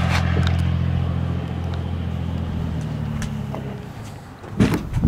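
A car engine idles with a low, steady rumble and then fades out.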